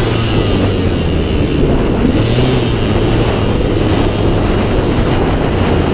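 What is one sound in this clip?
Tyres rumble over a bumpy dirt track.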